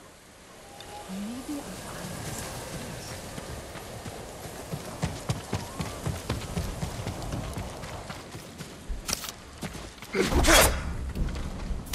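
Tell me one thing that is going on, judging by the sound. Footsteps run quickly over ground and wooden boards.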